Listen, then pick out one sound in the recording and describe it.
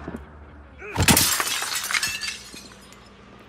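A window pane shatters, with glass breaking and scattering.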